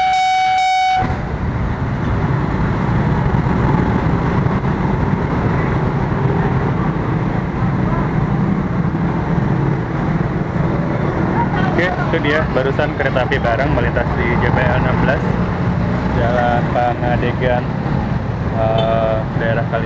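Motorbike engines idle and rev as traffic starts moving.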